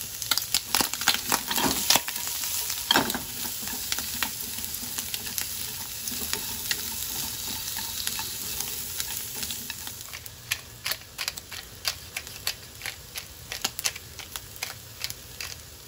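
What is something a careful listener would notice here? Onions and bacon sizzle in a hot pan.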